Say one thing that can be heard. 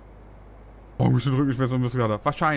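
A man talks with animation close to a microphone.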